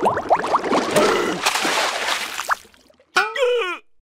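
Water splashes as something drops into it.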